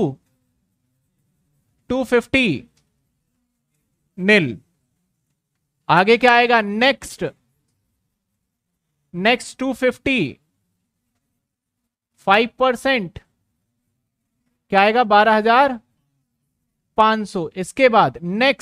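A man speaks calmly through a close microphone in short phrases with pauses.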